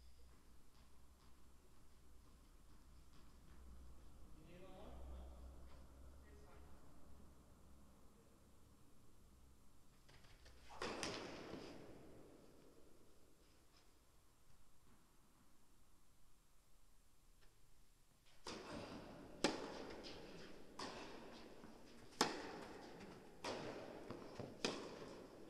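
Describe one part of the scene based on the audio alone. Tennis shoes squeak and scuff on the court.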